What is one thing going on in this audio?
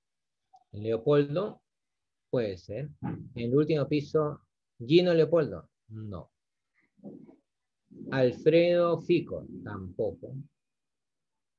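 A man speaks calmly through a microphone, as if explaining.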